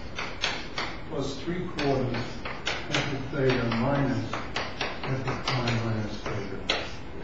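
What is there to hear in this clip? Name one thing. An elderly man talks calmly, lecturing.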